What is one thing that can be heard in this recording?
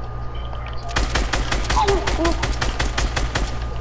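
Gunshots fire in a rapid, steady stream.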